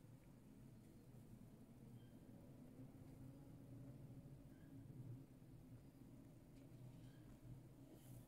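Fingers softly rub a rat's fur.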